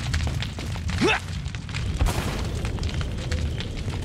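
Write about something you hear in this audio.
Flames crackle on burning wood.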